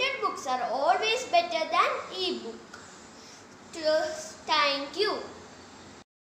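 A young boy speaks clearly and carefully close to the microphone.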